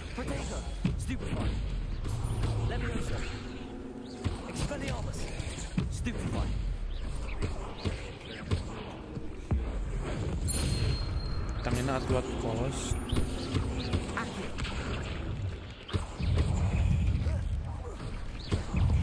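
Magic spells crackle and zap in a game.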